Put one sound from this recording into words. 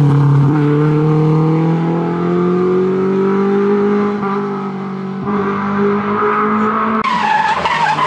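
A rally car engine roars loudly as the car speeds away.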